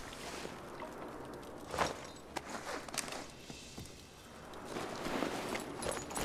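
Grass rustles as someone crawls through it.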